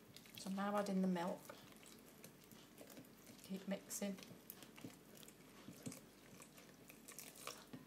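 Milk pours into a bowl with a soft trickle.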